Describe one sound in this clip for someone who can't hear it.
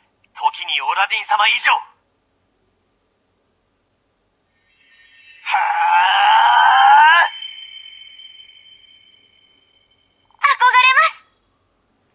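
A toy's small speaker calls out in a loud electronic voice.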